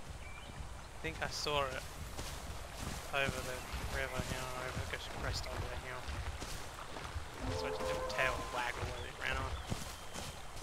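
A small dinosaur gives high, wavering chirping calls.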